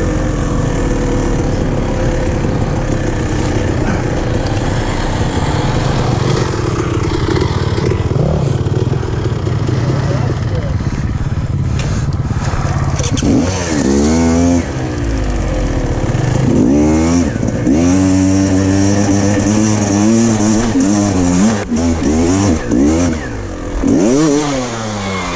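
Wind buffets loudly as the ride goes on outdoors.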